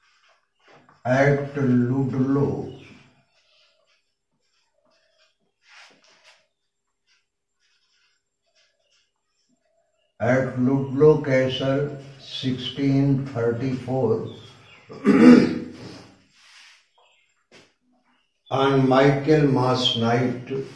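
An elderly man speaks calmly and clearly into a close microphone, pausing between phrases.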